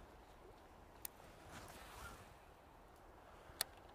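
A fishing reel clicks as line is cast.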